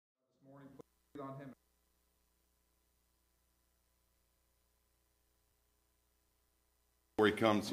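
A man speaks in short phrases into a microphone.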